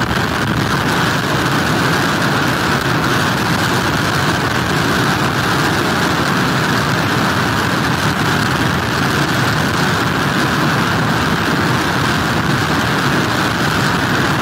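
Heavy surf crashes and roars against a pier.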